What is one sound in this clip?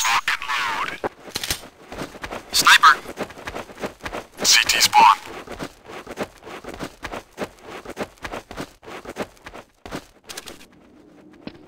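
Quick footsteps thud on hard ground.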